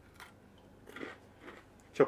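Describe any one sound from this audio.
A man munches a crunchy snack.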